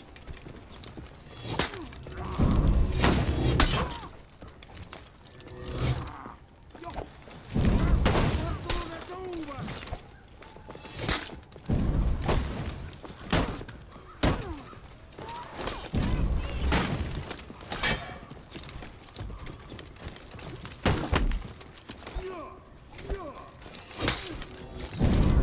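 Weapons clash and thud in a fight, again and again.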